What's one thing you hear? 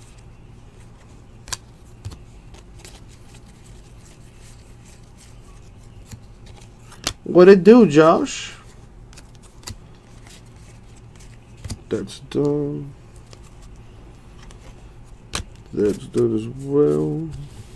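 Trading cards click and rustle as they are flipped through by hand.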